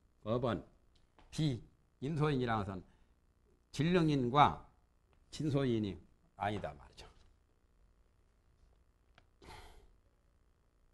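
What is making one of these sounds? A man speaks calmly in short phrases, then falls silent.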